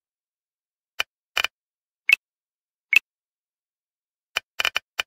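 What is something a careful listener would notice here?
Short electronic blips sound now and then.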